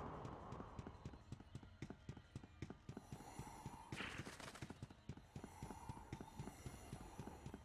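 Quick footsteps thud on hard stone.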